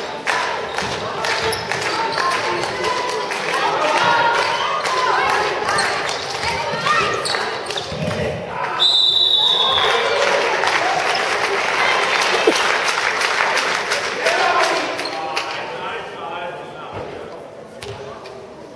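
A handball bounces and smacks against the floor and hands.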